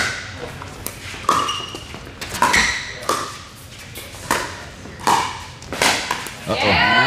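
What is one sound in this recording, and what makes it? Plastic paddles sharply pop against a hollow ball in a quick rally.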